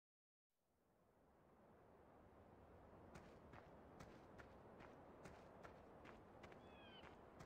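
Wind blows softly across an open field.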